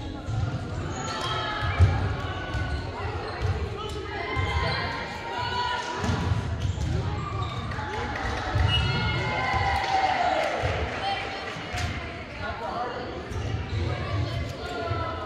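A crowd of spectators chatters and calls out throughout a large echoing gym.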